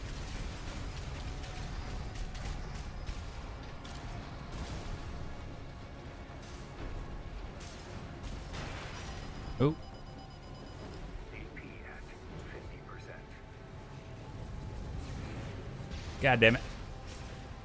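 Heavy gunfire and explosions rumble and crackle throughout.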